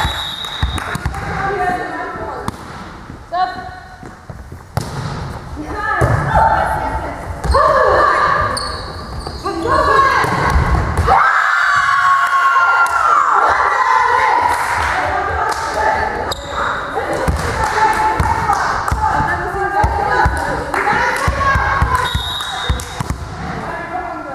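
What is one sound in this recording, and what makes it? Young women call out and cheer in a large echoing hall.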